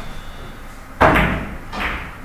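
A cue strikes a billiard ball with a sharp tap.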